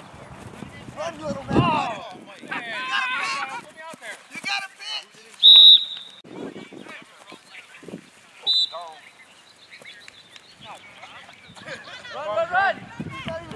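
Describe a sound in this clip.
Men shout and call out loudly outdoors.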